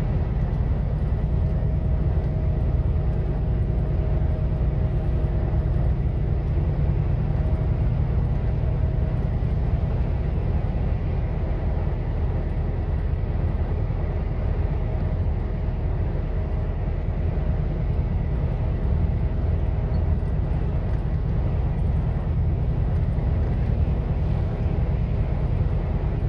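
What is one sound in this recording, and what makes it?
Tyres roll on asphalt with a steady rumble.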